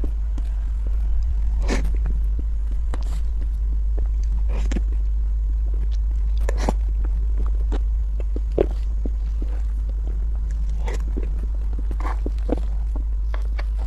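A spoon scrapes against a plate.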